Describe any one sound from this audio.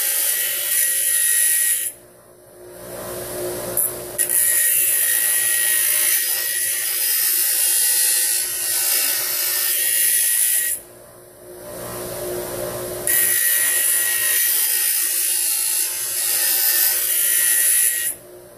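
Metal grinds loudly and harshly against a spinning grinding wheel, in bursts with short pauses.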